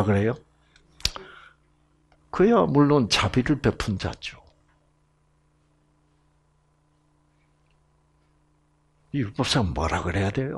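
An elderly man speaks with animation into a microphone, in short bursts.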